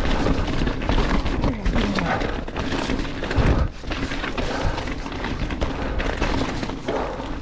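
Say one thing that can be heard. Bicycle tyres crunch and rumble over a rough dirt trail.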